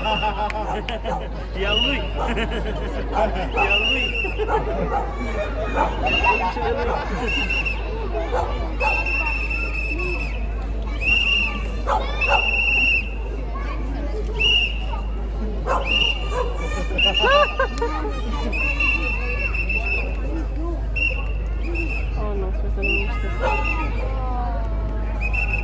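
A crowd of children chatters and calls out.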